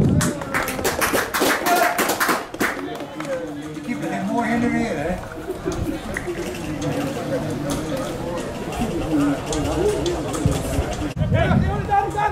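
Young men call out and talk outdoors.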